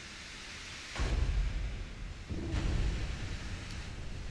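Shells explode in the water near a ship with heavy booms.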